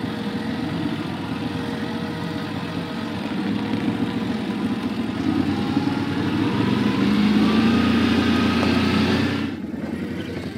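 A quad bike engine drones close by and revs up.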